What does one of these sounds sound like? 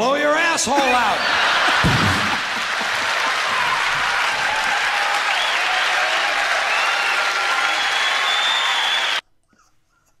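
An audience laughs loudly through a loudspeaker.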